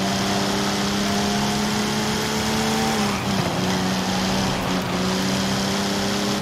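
A sports car engine hums steadily at speed.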